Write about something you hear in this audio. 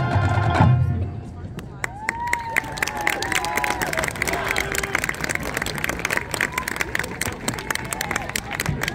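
A crowd in the stands claps and cheers.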